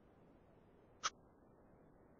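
A pen taps once against paper.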